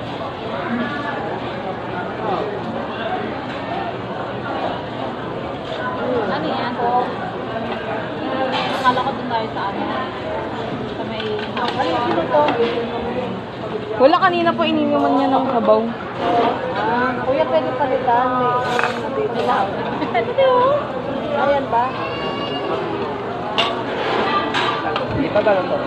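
Several women chat close by in a busy, echoing room.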